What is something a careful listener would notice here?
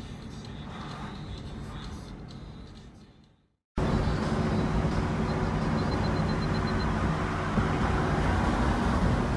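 Tyres hum steadily on a paved road from inside a moving car.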